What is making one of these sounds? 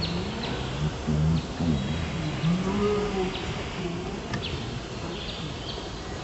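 A monkey squeaks with short, high chirps.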